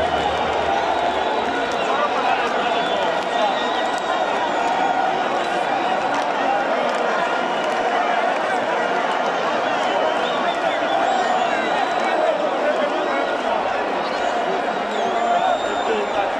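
A large stadium crowd sings and chants loudly all around, with a dense roar of many voices.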